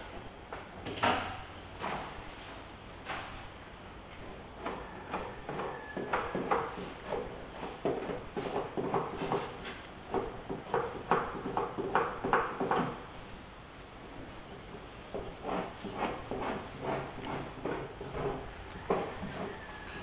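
Something knocks sharply on a wooden frame a few times.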